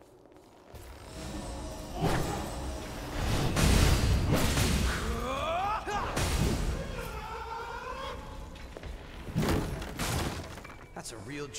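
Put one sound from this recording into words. A sword clashes and slashes with loud, crackling bursts.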